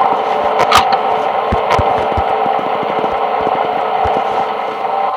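A low electronic hum buzzes steadily with static.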